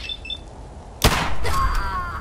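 A pistol fires a single loud shot that echoes.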